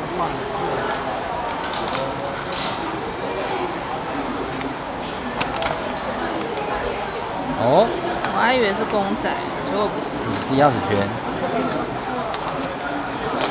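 Fingers twist and click a plastic capsule open.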